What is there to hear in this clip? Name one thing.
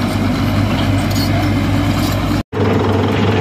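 A crawler bulldozer's diesel engine rumbles as it pushes earth.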